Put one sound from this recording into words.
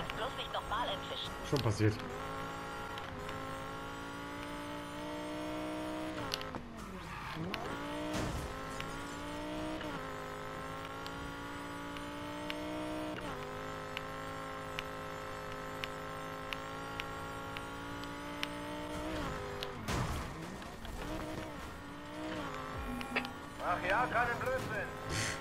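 A sports car engine roars at high revs, dropping and climbing again with each gear change.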